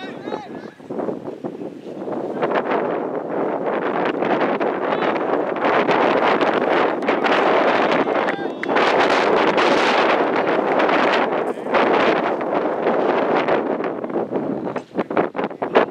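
Wind rushes loudly across an open field.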